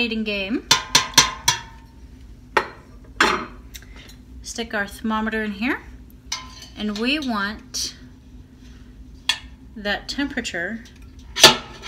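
A metal spoon clinks against a steel pot.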